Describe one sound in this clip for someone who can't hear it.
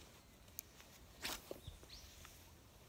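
A fishing rod swishes through the air in a cast.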